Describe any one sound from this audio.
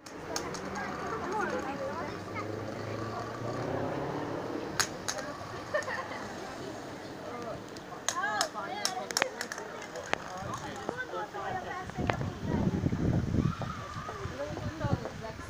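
A small crowd chatters nearby.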